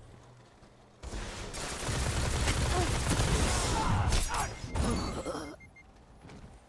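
A video game gun fires in rapid bursts.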